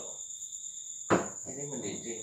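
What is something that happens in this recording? A metal canister knocks down onto a hard surface.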